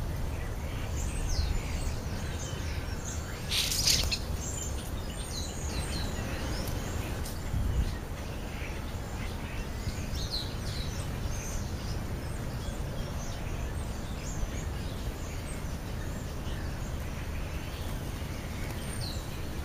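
Birds chirp and twitter close by.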